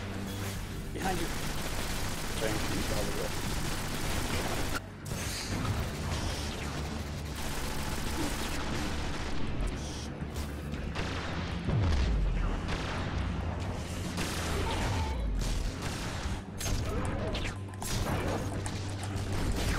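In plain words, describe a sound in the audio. Gunfire and explosions from a video game crackle and boom continuously.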